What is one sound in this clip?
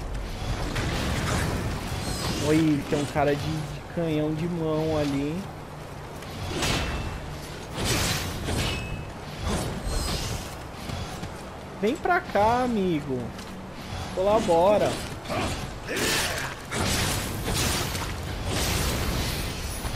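Swords clash and slash in combat.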